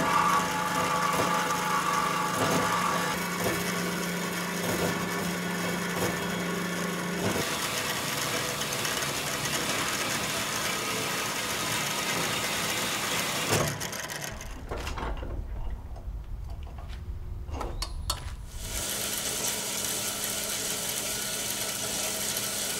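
A band saw hums steadily as its blade cuts through metal.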